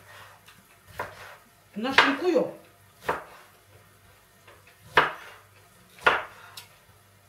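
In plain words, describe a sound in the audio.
A knife taps on a wooden chopping board.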